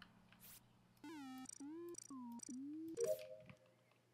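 Short electronic tones beep and sweep up and down in quick bursts.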